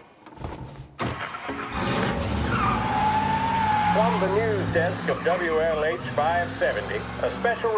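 A car engine starts and rumbles steadily as the car drives off.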